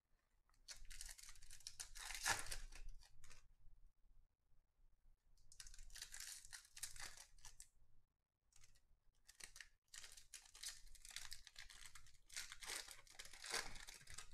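Paper cards slide and shuffle against each other.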